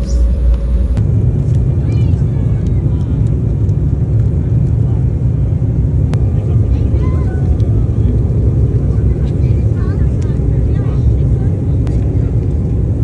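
A jet engine roars steadily as a plane rolls along a runway.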